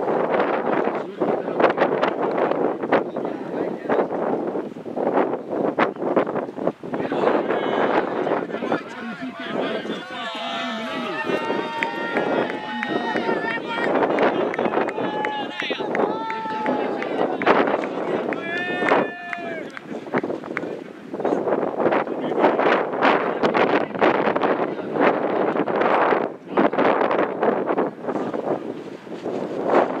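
Wind blows across an open field.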